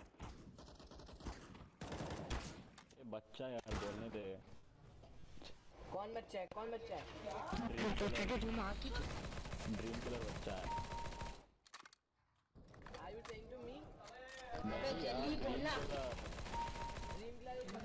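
Rifle shots crack in quick bursts.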